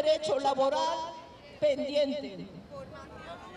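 A crowd of men and women chants loudly together outdoors.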